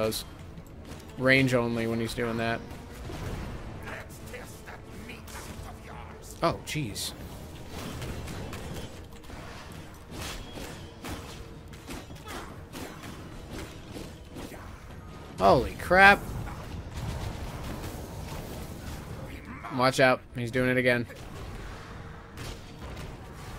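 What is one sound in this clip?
Fantasy game combat effects clash and whoosh.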